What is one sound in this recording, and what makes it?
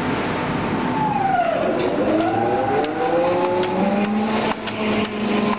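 A machine's whine sweeps down and back up in pitch.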